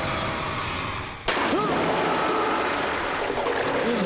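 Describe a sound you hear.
A man splashes heavily into water.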